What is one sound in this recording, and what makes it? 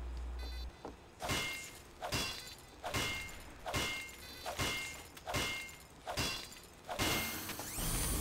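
A metal wrench clangs repeatedly against a machine in quick, even blows.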